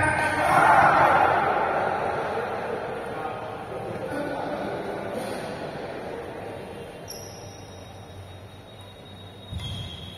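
Badminton rackets smack a shuttlecock back and forth in a large echoing hall.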